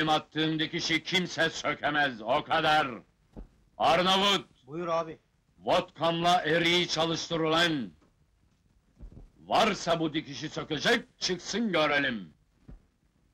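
An older man speaks loudly and angrily, close by.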